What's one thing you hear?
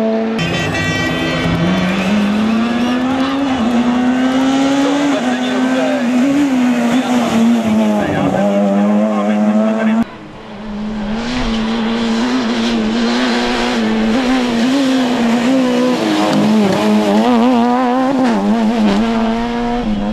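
A rally car engine roars loudly and revs up and down as the car speeds past.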